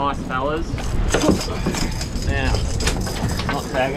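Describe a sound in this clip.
A fish flaps and thumps on a boat's deck.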